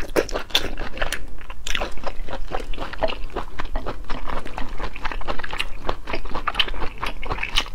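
A young woman chews wetly close to a microphone.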